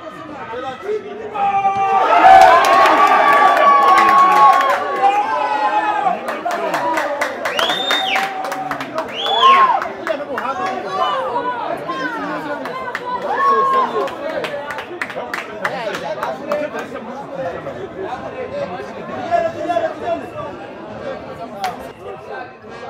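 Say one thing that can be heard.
A large crowd cheers and shouts outdoors, swelling loudly and then staying lively.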